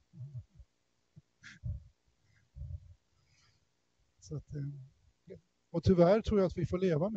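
A man speaks through a microphone, calmly and with pauses.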